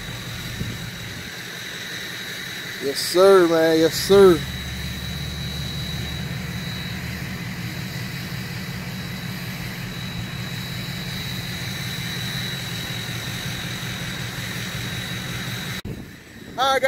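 An engine idles with a steady low hum.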